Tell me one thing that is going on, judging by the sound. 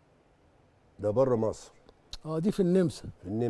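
A man speaks calmly, heard clearly through a microphone.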